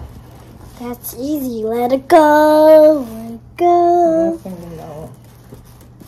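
A young girl sings out a long, wavering note close by.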